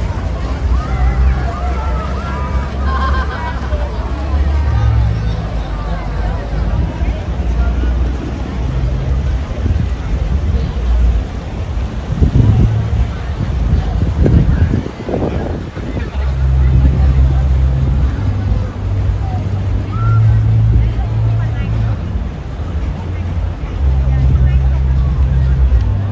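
A boat engine rumbles low and steady on the water.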